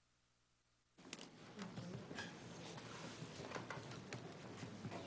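People in a room murmur and chatter softly.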